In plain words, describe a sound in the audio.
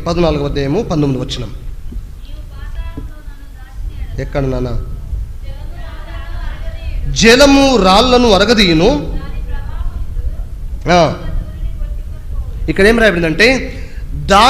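A man speaks with animation through a microphone and loudspeaker in an echoing room.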